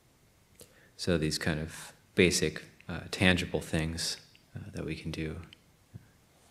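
A man speaks calmly and softly, close by.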